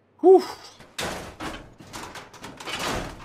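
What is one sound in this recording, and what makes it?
A crowbar scrapes and pries at a metal hatch.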